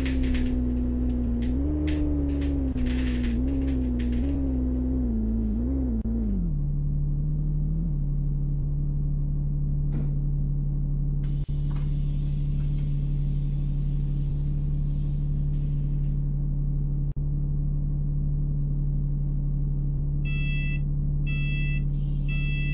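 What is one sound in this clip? A bus engine hums, its pitch wavering as the bus slows, then settles into a steady low idle.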